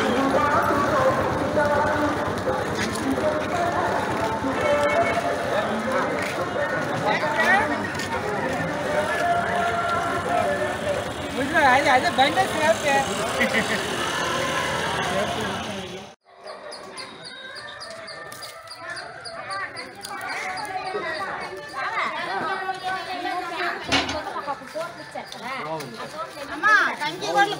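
A crowd of men talk and call out nearby outdoors.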